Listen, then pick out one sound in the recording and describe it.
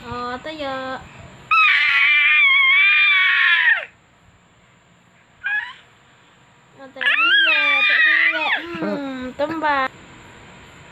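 A toddler squeals and laughs loudly close by.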